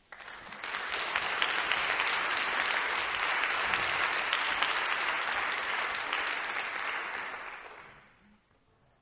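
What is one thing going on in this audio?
An audience applauds in a large echoing hall, then the clapping dies away.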